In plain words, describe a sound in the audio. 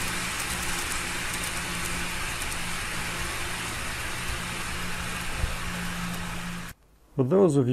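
A model train rolls along its track with a steady rumble and hum.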